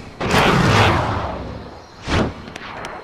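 A big cat roars loudly.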